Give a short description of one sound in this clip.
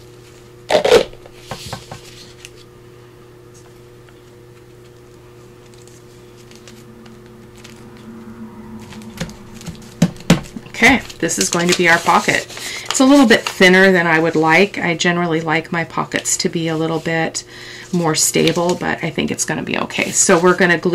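Sheets of paper rustle and slide as they are handled up close.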